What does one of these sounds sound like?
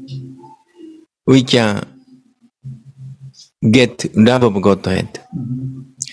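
An elderly man speaks calmly into a microphone, heard through an online call.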